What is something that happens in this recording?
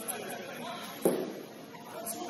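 A ball is kicked with a sharp thump.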